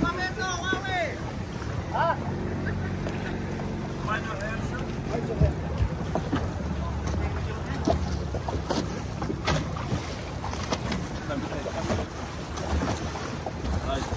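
A boat engine hums low and steady nearby.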